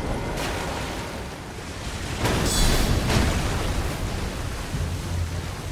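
A large creature growls deeply.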